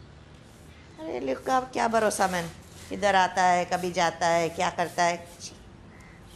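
A woman speaks loudly with animation nearby.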